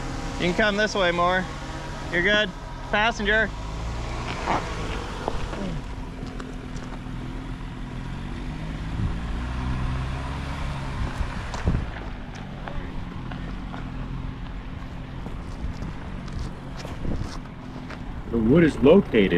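An engine rumbles low as an off-road vehicle drives slowly.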